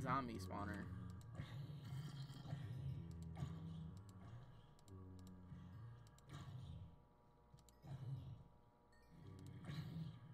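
A sword strikes zombies with dull hits.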